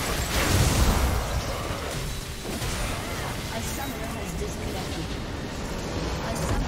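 Magic blasts and explosions crackle and boom in a fast battle.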